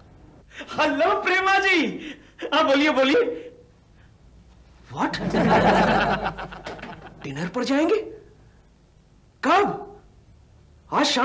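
A middle-aged man talks into a telephone with animation, close by.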